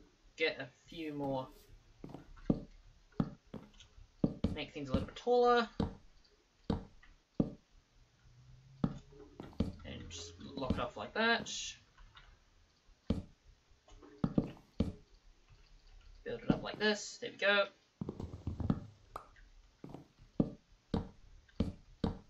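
Wooden blocks thud softly as they are placed, one after another.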